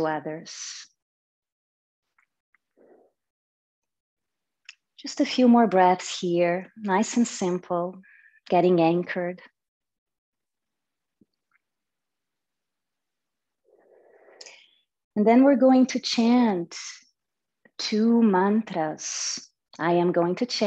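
A young woman speaks calmly and slowly into a microphone, with long pauses.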